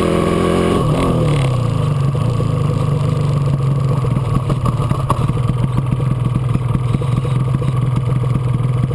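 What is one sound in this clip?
A two-stroke twin motorcycle engine putters along at low speed.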